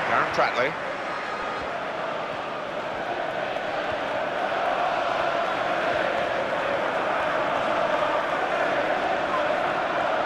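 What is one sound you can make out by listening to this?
A large stadium crowd roars steadily, swelling slightly.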